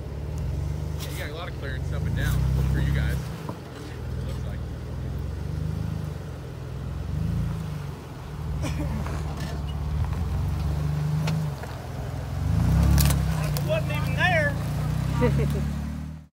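Tyres crunch on rocks and dirt.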